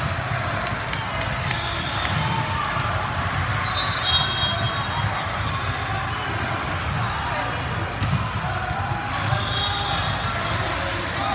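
A crowd of players and spectators chatters in a large echoing hall.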